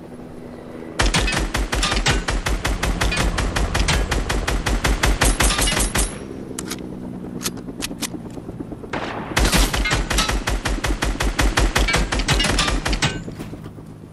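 Rapid bursts of gunfire rattle out.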